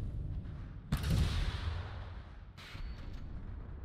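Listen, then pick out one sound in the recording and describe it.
Explosions boom and rumble in bursts.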